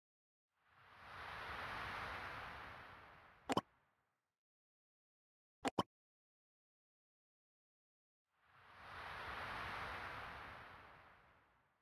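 A soft whoosh sweeps in and fades.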